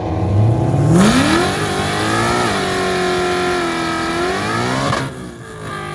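Tyres screech and spin on wet pavement during a burnout.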